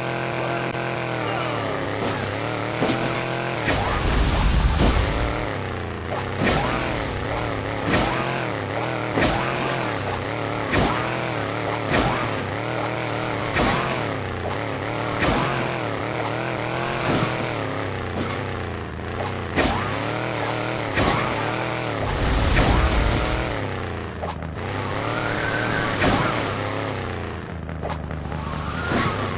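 A car engine revs and roars.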